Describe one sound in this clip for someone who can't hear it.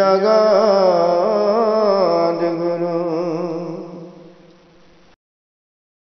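A man chants a slow melody close by, then fades away.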